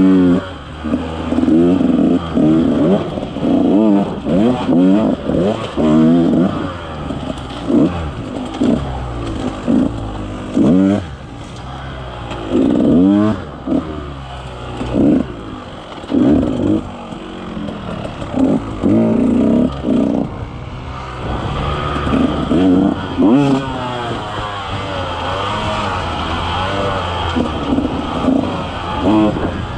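A dirt bike engine revs up and down, rising and falling in pitch.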